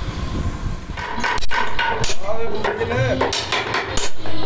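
A hammer taps a chisel into wood.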